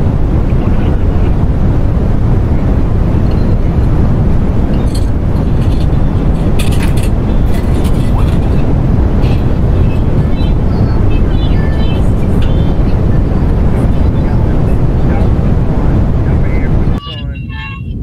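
Strong wind roars and howls loudly around a vehicle.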